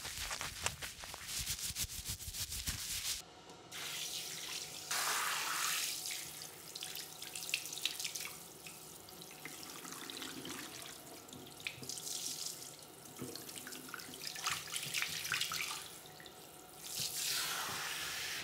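Water from a shower head sprays and splashes onto a tiled floor.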